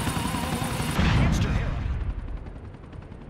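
An explosion booms loudly and rumbles away.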